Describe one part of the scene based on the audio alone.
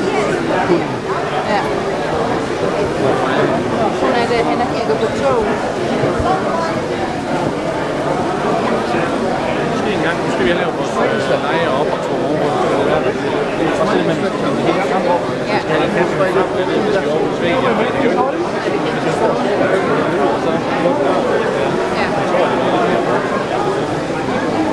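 Many people chatter all around in a large echoing hall.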